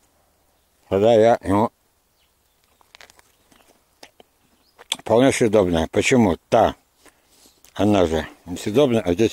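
A man talks close by in short bursts.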